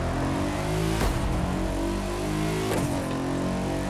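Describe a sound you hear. A car exhaust pops and crackles sharply.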